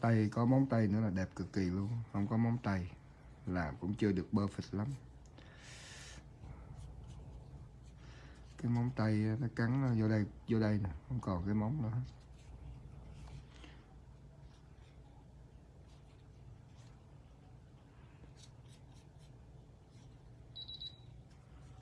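A cotton pad rubs softly against fingernails.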